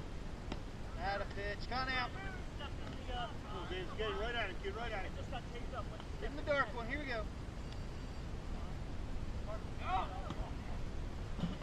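Young men shout and call out across an open field at a distance.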